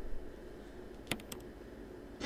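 A short electronic click sounds as a menu closes.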